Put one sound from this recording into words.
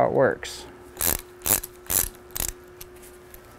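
A small tool clicks as a bolt is loosened.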